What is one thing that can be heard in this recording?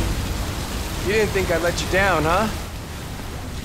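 A young man speaks teasingly nearby.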